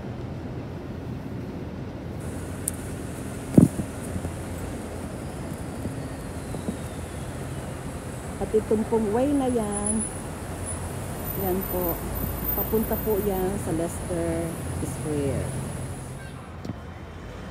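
Traffic hums steadily in a city street outdoors.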